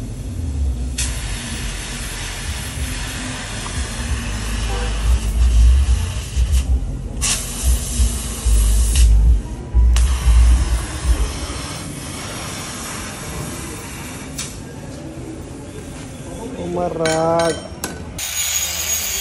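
A gas torch hisses and roars steadily.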